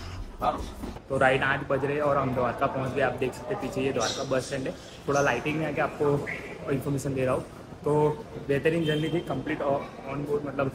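A young man talks up close, with animation.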